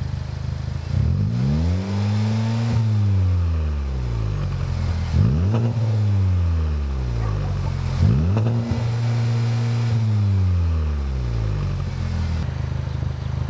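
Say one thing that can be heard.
A car engine revs up sharply and falls back, again and again.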